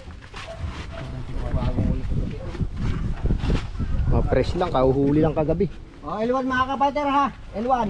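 Bundles thump and scrape onto a truck bed.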